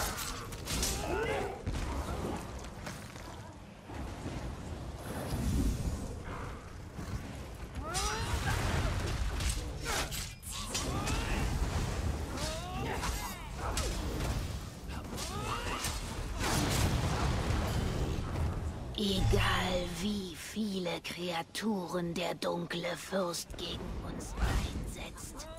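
Blades clash and strike in quick bursts.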